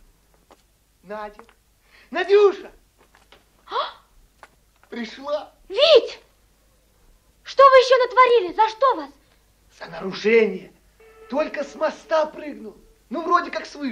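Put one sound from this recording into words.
A young girl calls out loudly, shouting upward.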